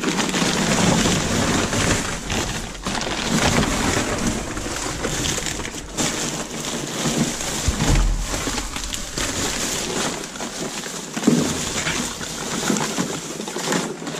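Plastic bags and paper rustle and crinkle as they are rummaged through.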